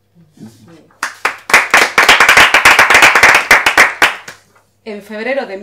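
A small group of women applaud.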